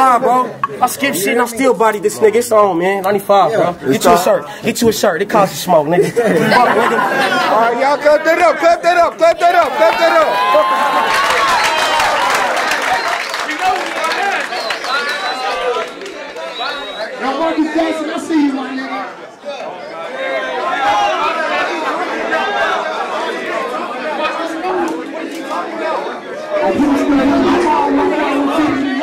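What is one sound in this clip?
A crowd of young people shouts and cheers in an echoing room.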